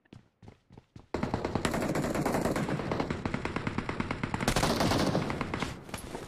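Footsteps tread across a wooden floor indoors.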